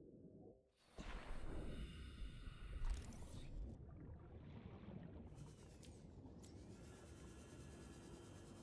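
A small submersible's engine hums steadily underwater.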